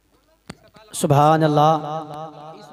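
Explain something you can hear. A man chants loudly and melodiously through a microphone.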